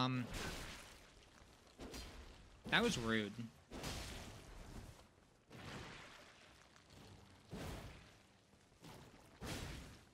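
A sword swings and strikes with sharp slashing hits.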